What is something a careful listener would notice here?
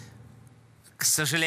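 A young man speaks calmly into a microphone.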